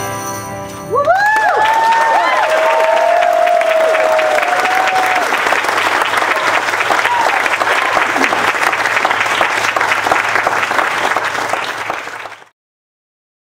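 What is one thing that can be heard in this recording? An audience claps and cheers loudly.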